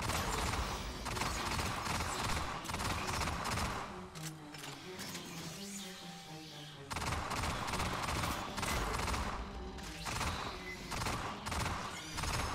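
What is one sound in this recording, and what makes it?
Automatic rifle fire rattles in rapid bursts.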